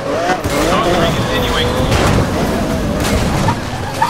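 A car smashes through a metal gate with a crash.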